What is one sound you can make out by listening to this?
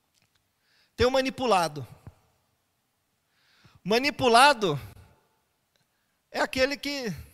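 A man speaks clearly and with animation, close to a microphone, in short phrases with pauses.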